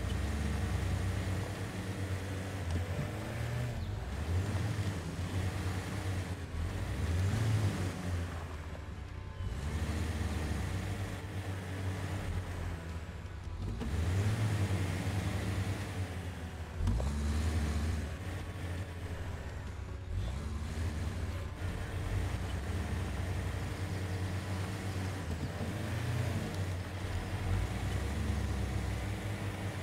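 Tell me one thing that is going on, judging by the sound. An off-road engine rumbles low and revs up and down.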